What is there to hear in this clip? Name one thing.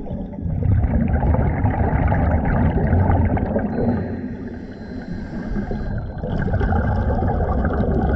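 Air bubbles gurgle and burble underwater from a diver's regulator.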